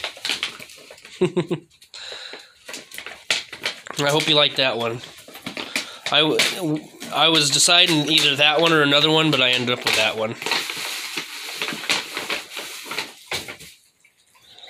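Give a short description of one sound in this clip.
Paper crinkles and rustles as a gift bag is opened.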